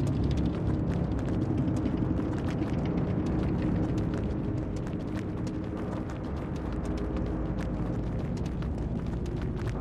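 Quick electronic ticks sound in a rapid run.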